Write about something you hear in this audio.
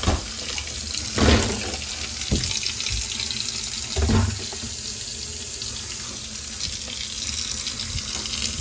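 Tap water splashes steadily onto ice in a metal sink.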